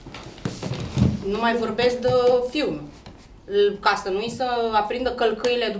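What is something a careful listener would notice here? A woman speaks expressively, raising her voice.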